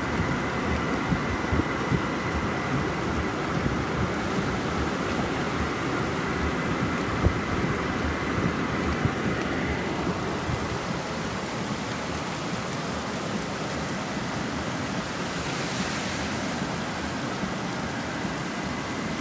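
Heavy rain drums on a car's roof and windshield.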